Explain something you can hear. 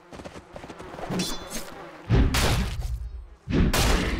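Game spell effects and weapon hits crackle and boom in quick bursts.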